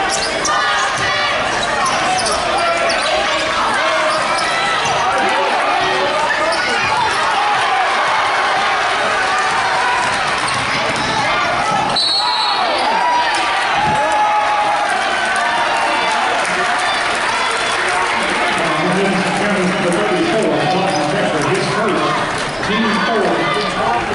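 A crowd cheers and shouts in a large echoing gym.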